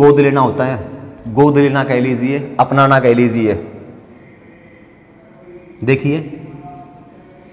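A man speaks loudly and clearly, explaining.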